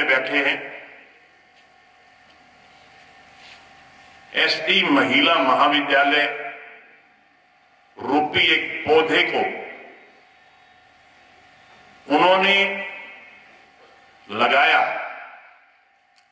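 An elderly man speaks forcefully in short bursts through loudspeakers, his words echoing between pauses.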